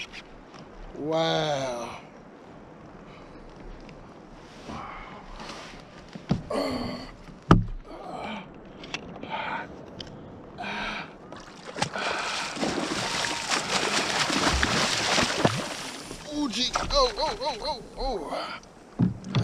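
A man talks and exclaims close by.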